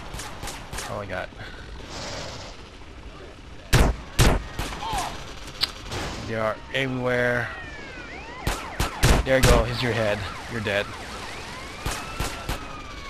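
Shotguns fire in loud, sharp blasts.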